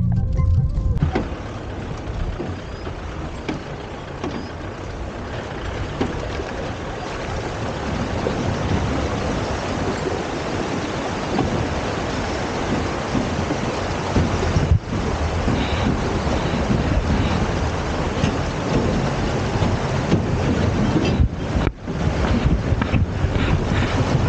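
Wind blows hard past the microphone.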